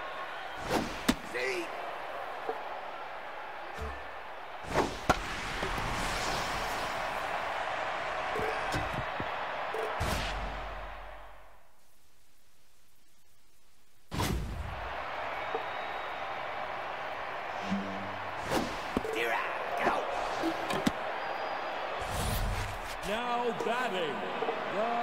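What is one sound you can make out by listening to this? A large stadium crowd cheers and murmurs.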